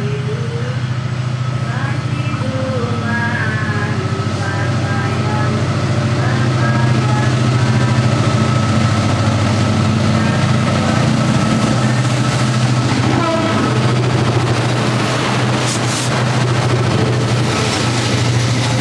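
A diesel locomotive engine rumbles steadily, growing louder as it approaches.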